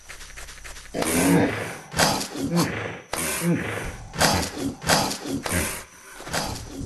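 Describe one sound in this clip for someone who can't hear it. Heavy bites crunch and thud again and again.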